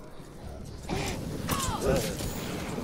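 Fire roars in a sudden burst.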